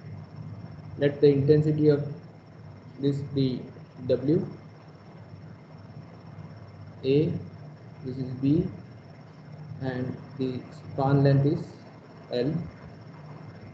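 A man speaks calmly through a microphone over an online call, in short phrases with pauses.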